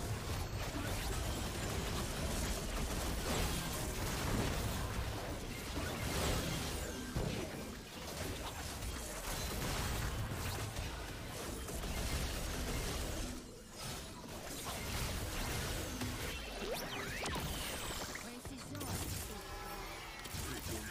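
Fantasy battle sound effects clash, zap and explode without pause.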